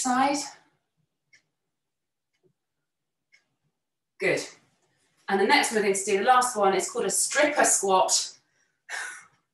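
A young woman talks clearly and encouragingly into a close microphone, in short bursts.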